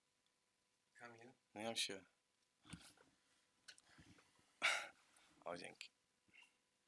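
A bearded man talks calmly a little farther off.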